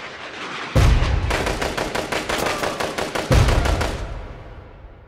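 A rocket fires and roars past.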